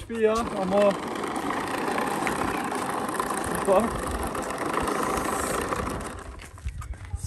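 A lawnmower engine roars steadily nearby.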